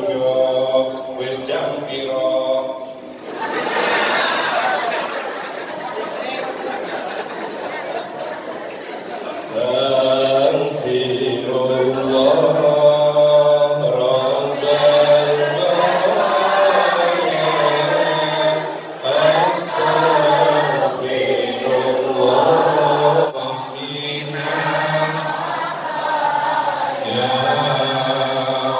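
A group of men chant together in unison.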